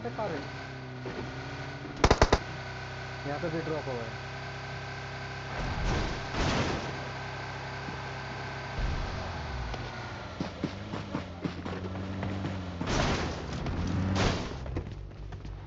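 A car engine hums steadily and revs as a car drives over bumpy ground.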